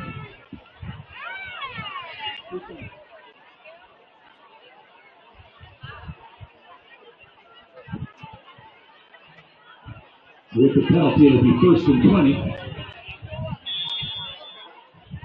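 Young men on the sideline shout and call out.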